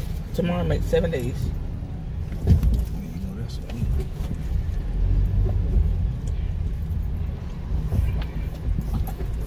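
A low engine rumble hums steadily throughout.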